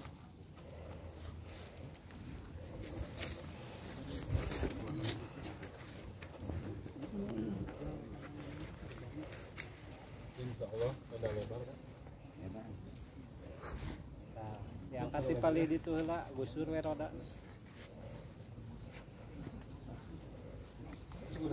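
Several men talk quietly nearby, outdoors.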